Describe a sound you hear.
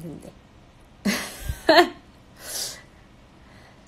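A young woman laughs briefly.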